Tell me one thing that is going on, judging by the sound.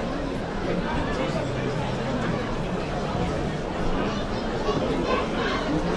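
A large crowd murmurs.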